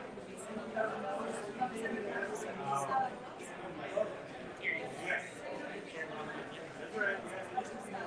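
A man and a woman talk quietly a short way off.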